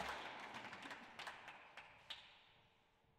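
A squash ball smacks sharply off the walls of an echoing court.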